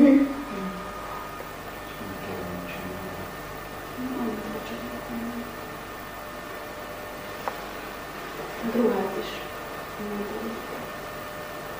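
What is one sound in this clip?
A young woman talks calmly at a distance.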